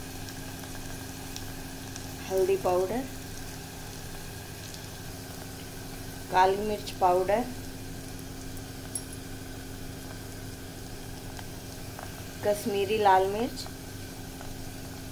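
Onions sizzle softly in a hot pot.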